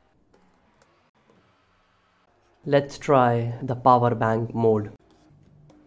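A plastic battery holder clicks softly as it is handled.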